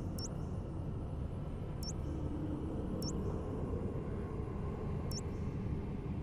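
Soft menu ticks sound a few times.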